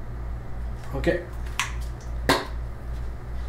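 A small object knocks down onto a wooden surface.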